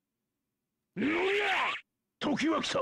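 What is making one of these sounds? Punches land with heavy smacks.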